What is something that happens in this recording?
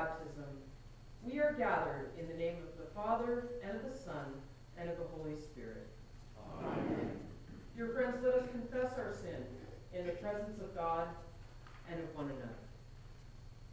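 A group of people sing a hymn together in a large echoing hall.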